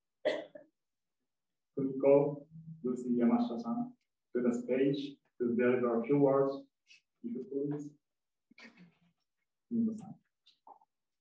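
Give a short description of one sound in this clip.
A man speaks calmly over a microphone.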